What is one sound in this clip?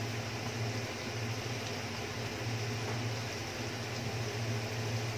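Meat sizzles and crackles steadily in a hot pan.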